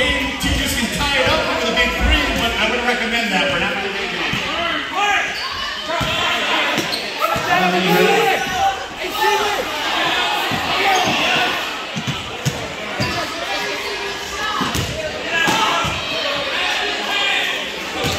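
Men call out to each other during play.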